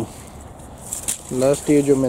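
Pruning shears snip through a stem.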